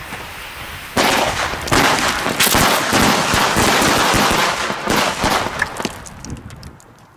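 A string of firecrackers bangs and crackles rapidly outdoors.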